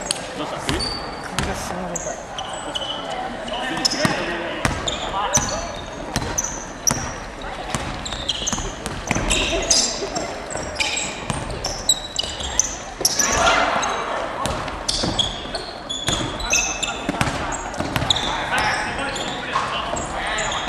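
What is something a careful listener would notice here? A basketball bounces with hollow thuds.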